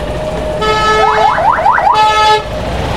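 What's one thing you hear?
A motorcycle engine revs up sharply several times.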